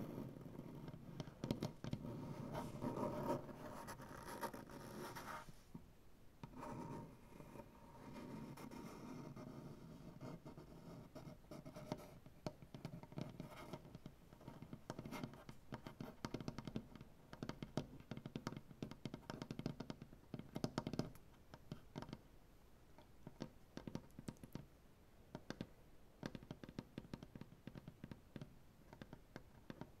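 Fingernails scratch and tap on a wooden tabletop close up.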